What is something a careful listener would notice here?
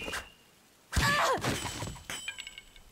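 A knife clatters onto wooden boards.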